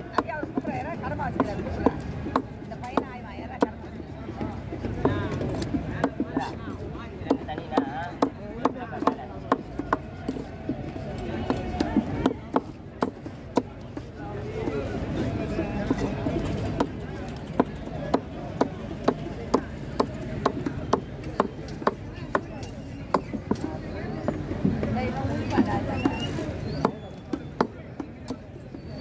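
A heavy knife chops through fish on a wooden block with repeated sharp thuds.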